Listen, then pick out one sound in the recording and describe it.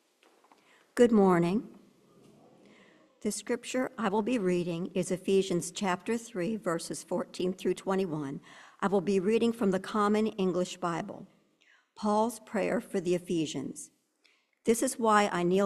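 A woman reads aloud calmly into a microphone.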